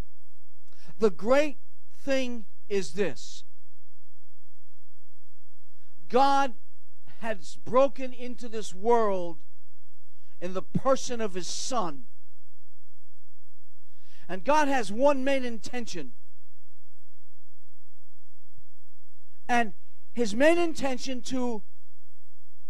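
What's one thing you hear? An elderly man speaks slowly and forcefully into a microphone, with long pauses.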